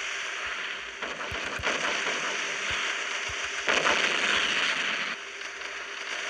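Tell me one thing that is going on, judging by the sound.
Shells explode with loud blasts.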